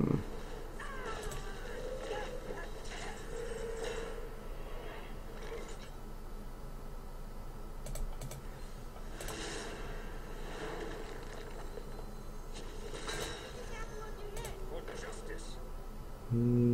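A man talks calmly and quietly into a microphone.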